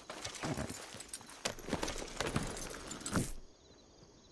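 A horse's hooves clop on dirt.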